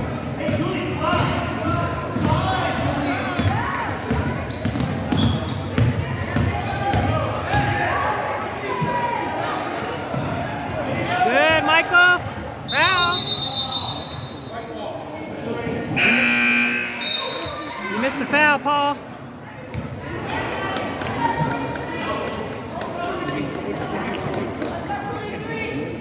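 A crowd of spectators chatters in an echoing gym.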